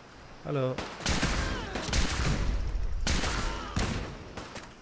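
A rifle fires single loud shots that echo.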